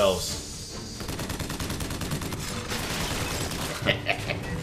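A machine gun fires in a rapid burst.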